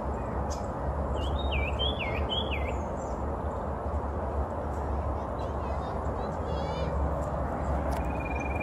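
Wind blows steadily outdoors, rustling leaves.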